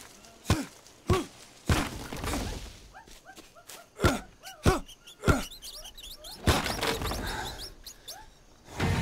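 Footsteps crunch on a leafy forest floor.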